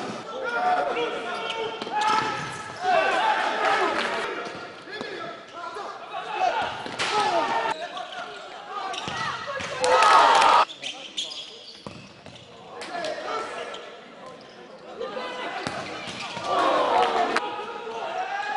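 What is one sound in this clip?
Spectators chatter and call out in a large echoing hall.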